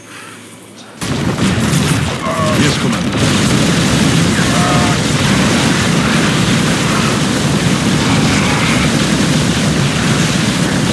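Rapid gunfire rattles in a dense battle.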